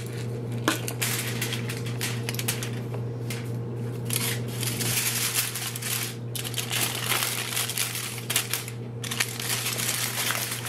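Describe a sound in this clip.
Hands crinkle and fold aluminium foil.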